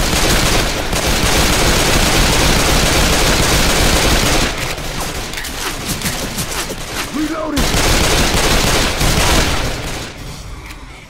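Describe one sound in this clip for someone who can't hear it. Guns fire in rapid bursts, loud and close.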